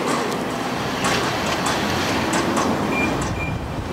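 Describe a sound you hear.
Footsteps walk steadily.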